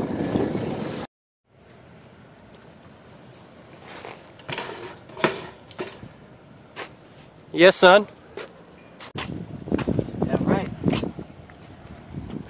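Bicycle tyres roll and scrape over concrete.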